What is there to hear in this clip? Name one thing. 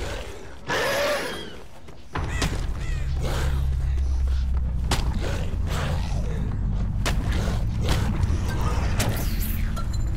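A blade swings and slashes through the air again and again.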